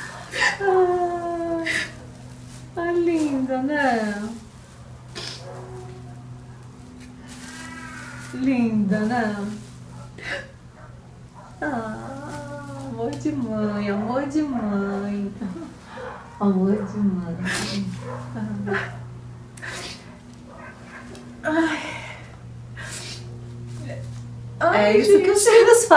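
A young woman sobs and cries close by.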